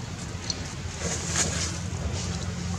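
A small monkey rustles dry leaves as it moves.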